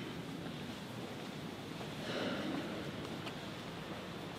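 Footsteps and rustling robes echo softly in a large, reverberant hall.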